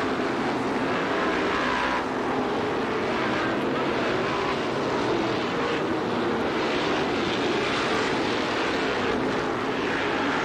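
Racing car engines roar loudly as the cars speed past.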